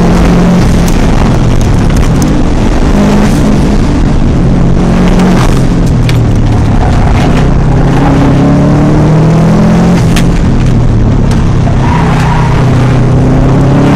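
A car engine hums steadily, rising and falling in pitch as the car drives.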